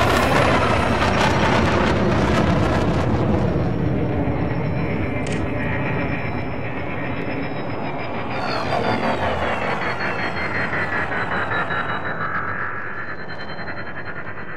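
A spaceship engine roars with a deep, steady rumble.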